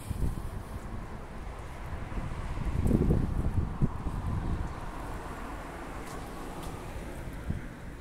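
A car drives past on a nearby road.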